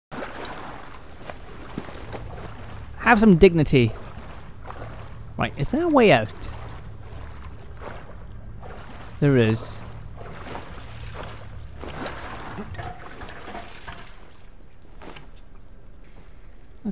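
Footsteps splash slowly through shallow water in an echoing tunnel.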